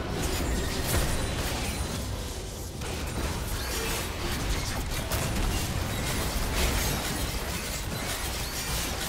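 Game spell effects crackle and burst in quick succession.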